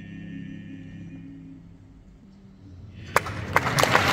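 Four men sing a held chord together in a large hall.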